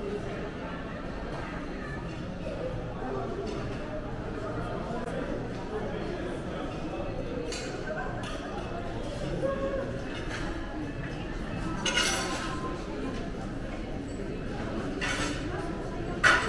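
Distant voices murmur in a large echoing hall.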